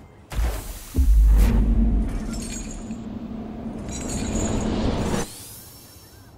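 A heavy deep boom rumbles and fades.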